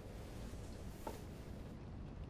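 A small watch is set down on a hard floor with a light click.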